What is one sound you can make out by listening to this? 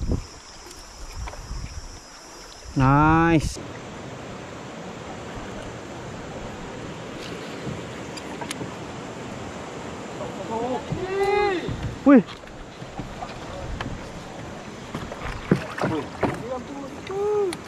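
Water laps and splashes against a small boat.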